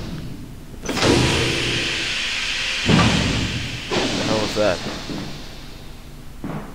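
Steam hisses loudly from a pipe.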